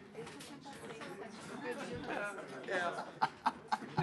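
Paper rustles as a booklet is handled.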